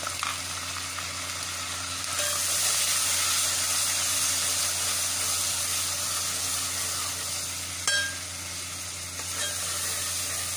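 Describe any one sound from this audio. A metal spoon scrapes against a steel pot.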